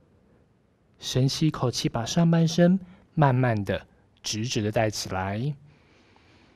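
A man calmly gives instructions through a headset microphone.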